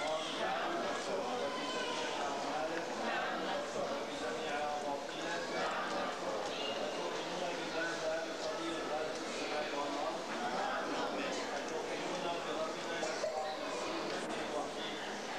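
A crowd of men and women chatter in a large echoing hall.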